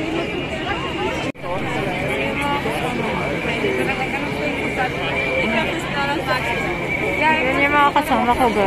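A crowd of men and women chatter all around outdoors.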